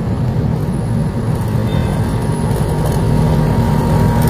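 A motorcycle engine hums as it approaches along a dirt road.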